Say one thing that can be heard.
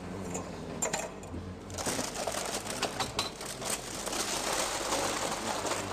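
A paper bag rustles and crinkles close by.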